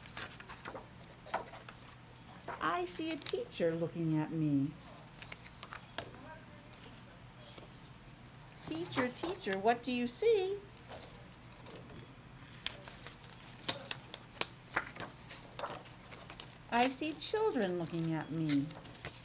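Pages of a book rustle as they are turned.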